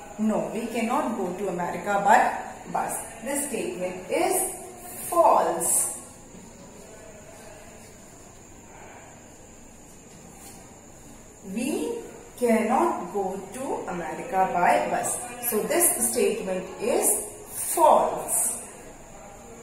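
A middle-aged woman speaks clearly into a close microphone, explaining as a teacher would.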